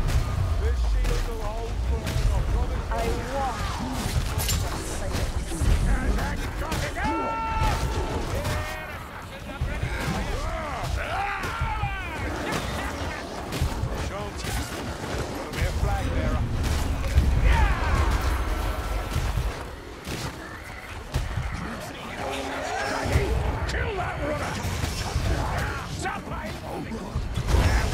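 Beastly creatures snarl and roar close by.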